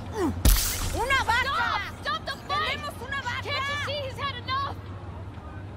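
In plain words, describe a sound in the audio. A woman shouts pleadingly with animation from nearby.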